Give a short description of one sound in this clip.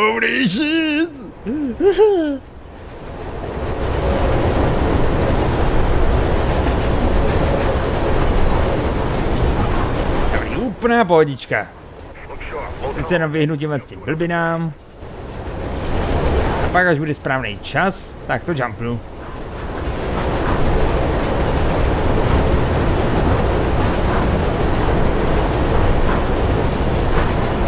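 A train rumbles steadily along the tracks through a tunnel.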